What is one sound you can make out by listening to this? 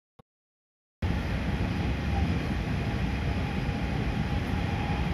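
A train's carriage hums and rattles with a steady noise inside.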